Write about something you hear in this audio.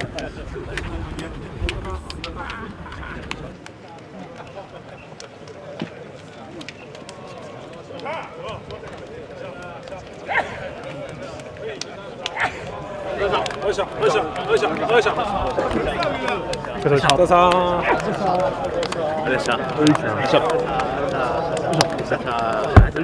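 Hands slap together in quick high fives.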